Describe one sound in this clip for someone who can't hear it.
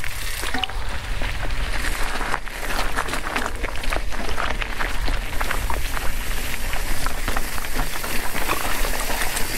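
Wind rumbles against a moving rider.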